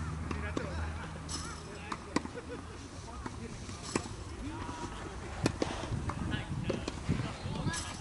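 Tennis balls are struck with rackets, with sharp pops.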